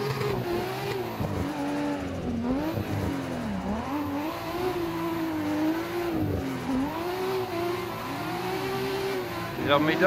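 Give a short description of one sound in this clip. Tyres screech as the car slides through bends.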